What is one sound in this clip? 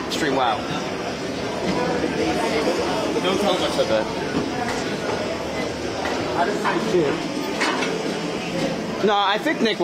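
Footsteps thud steadily on a running treadmill belt.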